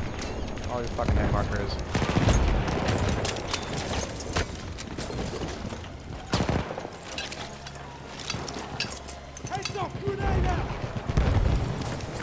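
Gunshots crack and boom amid a noisy battle.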